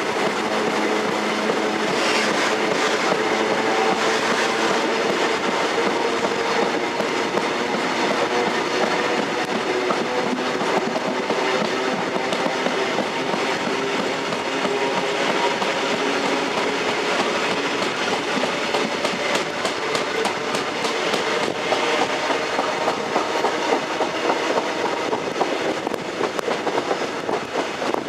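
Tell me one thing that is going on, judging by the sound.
A train rumbles steadily along the rails from inside a carriage.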